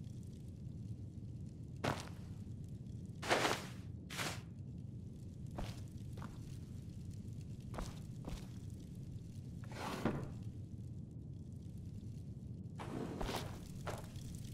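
Footsteps tread on a stone floor indoors.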